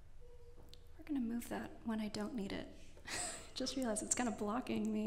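A young woman speaks into a microphone in a large echoing hall.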